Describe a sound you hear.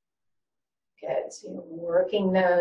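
An older woman speaks calmly and clearly into a nearby microphone.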